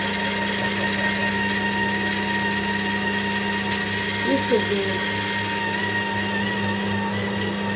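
Orange pieces drop into a juicer with soft thuds.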